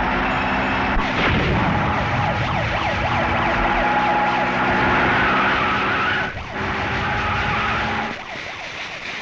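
A large fire roars.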